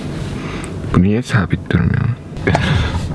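A young man speaks briefly inside a car.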